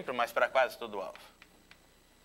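A man speaks briefly and calmly into a microphone.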